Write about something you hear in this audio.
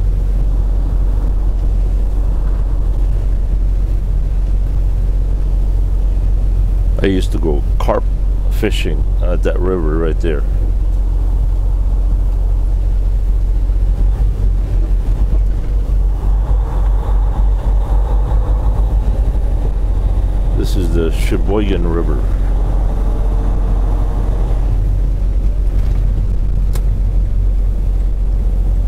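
Tyres hum on a road.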